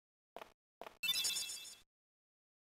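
A bright, glittering chime rings out and fades.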